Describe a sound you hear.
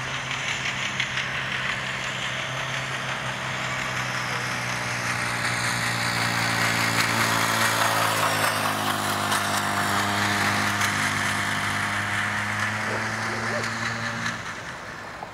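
A motor hums steadily, then cuts off.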